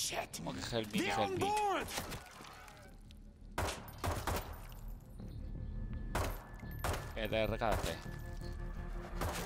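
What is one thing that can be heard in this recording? Gunshots fire in sharp bursts indoors.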